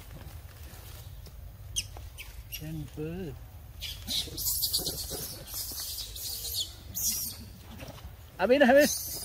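Leaves and branches rustle as monkeys climb.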